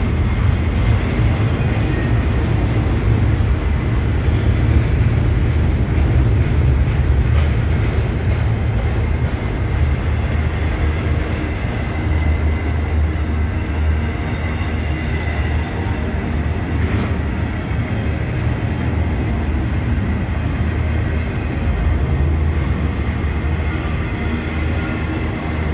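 A long freight train rumbles past close by, its wheels clattering steadily on the rails.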